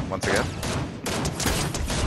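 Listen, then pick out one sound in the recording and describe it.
A rifle fires a single sharp shot.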